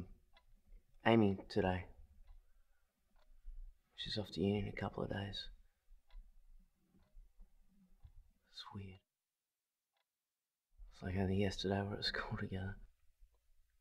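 A young man speaks quietly and earnestly nearby.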